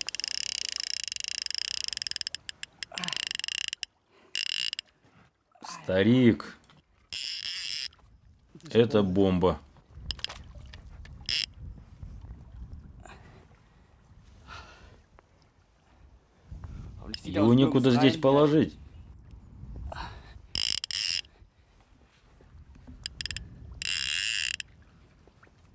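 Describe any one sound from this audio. Water laps and splashes against a boat.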